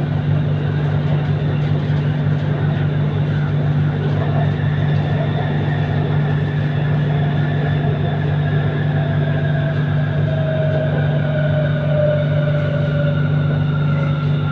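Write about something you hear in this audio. A train hums and rumbles steadily along an elevated track.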